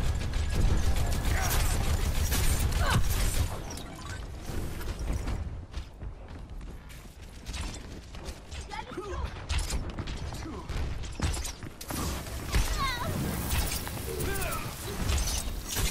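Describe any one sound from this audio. A gun fires in rapid bursts with sharp crackling zaps.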